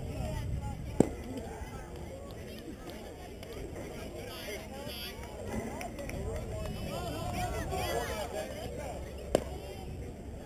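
A ball smacks sharply into a catcher's mitt.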